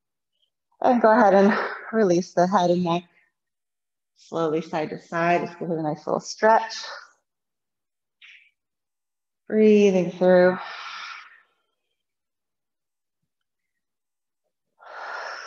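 A woman speaks calmly and slowly, close to a microphone, pausing between phrases.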